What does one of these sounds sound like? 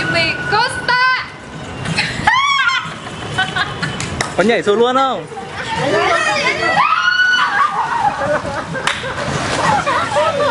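A young woman shouts and squeals excitedly close by.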